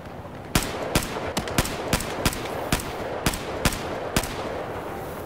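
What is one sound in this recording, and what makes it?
A rifle fires a rapid series of sharp shots.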